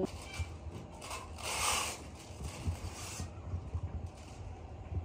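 Paper rustles as sheets are handled.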